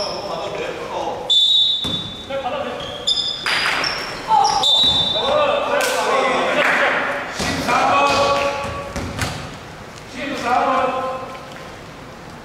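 Young men call out loudly to each other in an echoing hall.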